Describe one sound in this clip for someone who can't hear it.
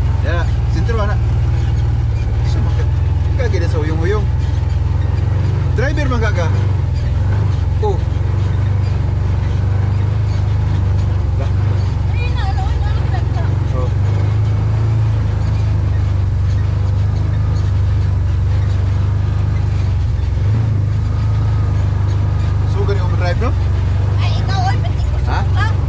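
A woman talks casually nearby, heard over the engine.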